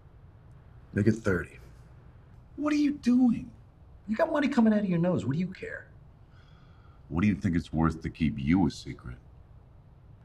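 A second man answers calmly in a deep voice, close by.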